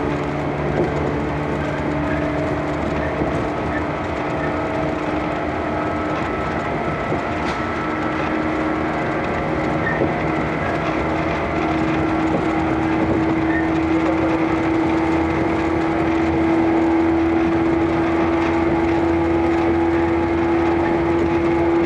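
A train's motor hums with a rising whine.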